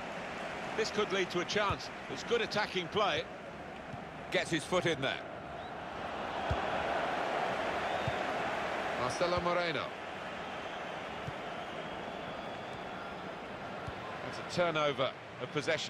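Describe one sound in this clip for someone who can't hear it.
A stadium crowd roars and murmurs.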